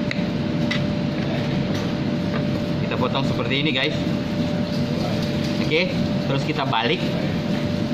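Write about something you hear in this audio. Plastic gloves crinkle as hands handle raw chicken.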